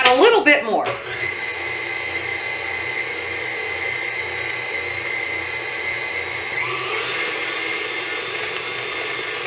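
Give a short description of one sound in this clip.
An electric stand mixer whirs steadily.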